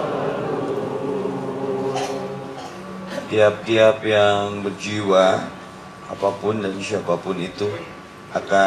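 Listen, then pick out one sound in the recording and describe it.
A young man speaks through a microphone, heard over a loudspeaker.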